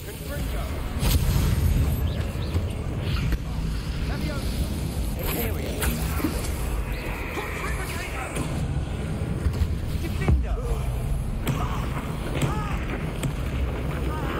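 Heavy impacts thud and boom.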